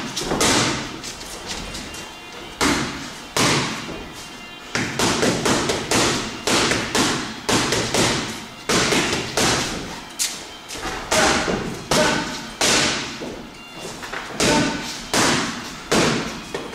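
Boxing gloves smack hard against punch pads in a quick, uneven rhythm.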